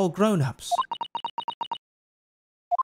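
Short electronic beeps tick in quick succession.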